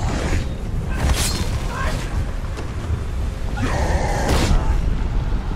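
A sword whooshes and clangs against a shield.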